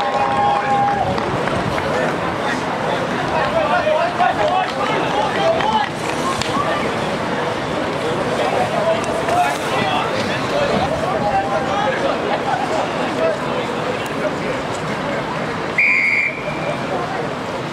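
A crowd of spectators chatters and calls out close by, outdoors.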